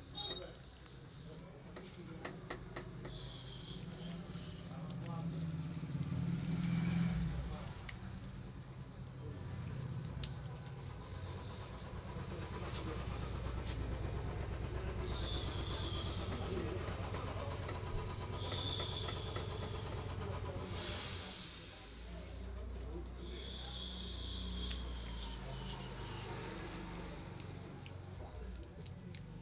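Hands rub and squelch wet lather on skin close by.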